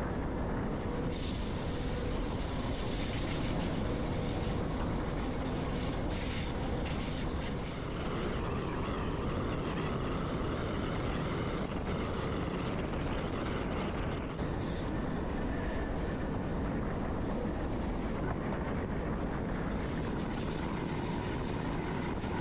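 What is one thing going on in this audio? A train rolls fast along the rails with a steady rumble.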